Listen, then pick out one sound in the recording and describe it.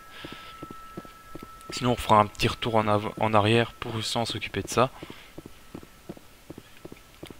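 Footsteps thud steadily on a hard metal floor.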